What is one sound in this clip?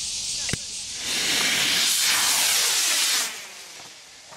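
A model rocket launches with a loud rushing roar.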